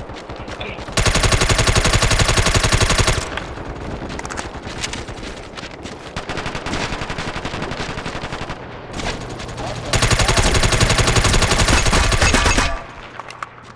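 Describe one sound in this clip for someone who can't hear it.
An automatic rifle fires in long, rapid bursts.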